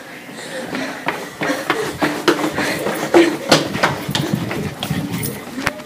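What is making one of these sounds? Footsteps run quickly along a hard floor.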